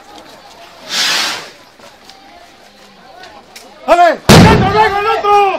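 A loud bang goes off nearby.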